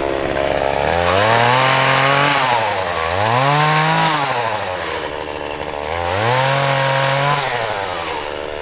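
A chainsaw revs up and down several times.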